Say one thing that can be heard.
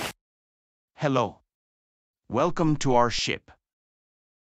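A man speaks in a warm, clear voice close by.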